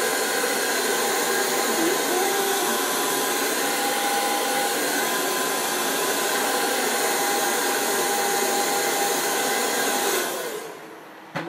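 A hair dryer blows with a steady loud roar.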